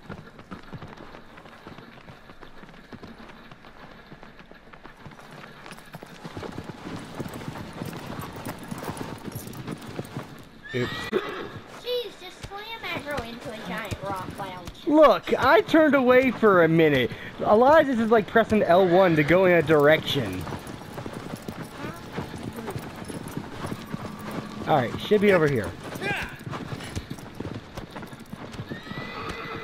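A horse gallops with steady hoofbeats on hard ground.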